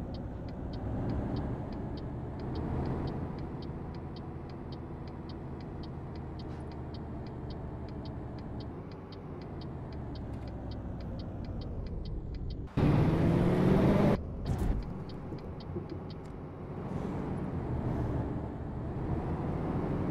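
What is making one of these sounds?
A bus engine hums steadily.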